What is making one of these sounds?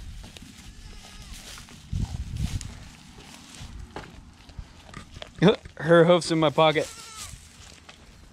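A goat munches and crunches dry hay up close.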